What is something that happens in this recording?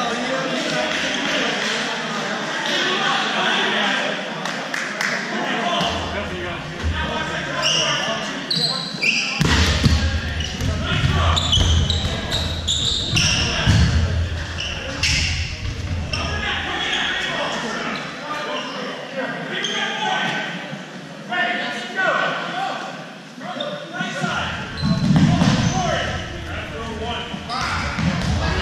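A crowd of young people chatters and shouts in a large echoing gym.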